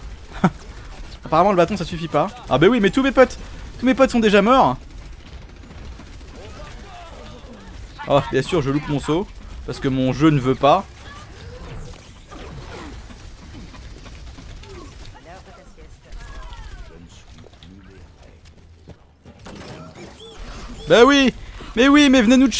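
Gunfire crackles from a video game.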